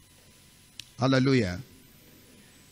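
A man speaks a short loud phrase through a microphone.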